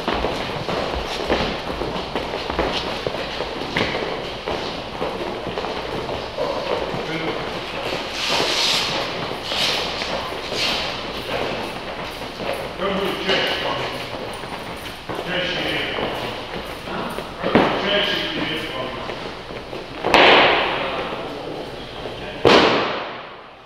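A man calls out instructions loudly.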